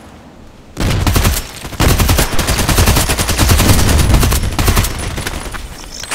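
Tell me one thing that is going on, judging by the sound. Shots from a suppressed rifle crack.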